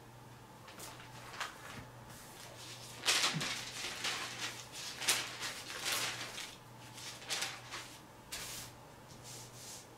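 Pages of a book rustle as a man turns them.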